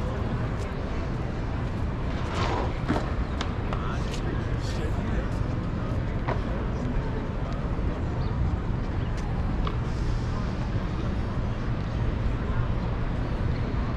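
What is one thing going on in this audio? Wind rumbles across an open outdoor space.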